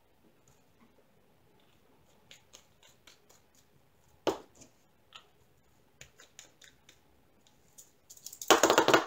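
Small plastic containers click and tap against each other.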